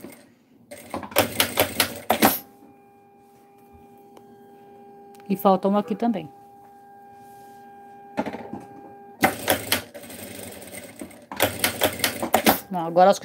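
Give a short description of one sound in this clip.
A sewing machine whirs in quick bursts as it stitches.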